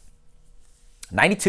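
A young man speaks up close to a microphone.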